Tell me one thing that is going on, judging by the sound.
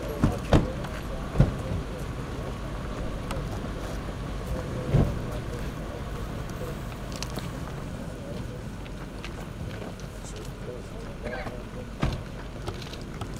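Several men talk calmly nearby outdoors.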